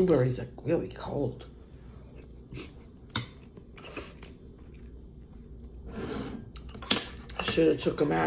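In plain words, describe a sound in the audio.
An elderly woman chews crunchy cereal.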